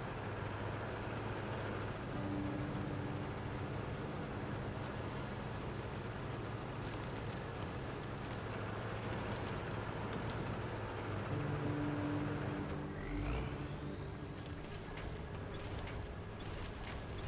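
A heavy truck engine rumbles and revs as it drives over rough ground.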